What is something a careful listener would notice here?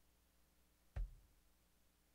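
A drum is struck once with a dull thump.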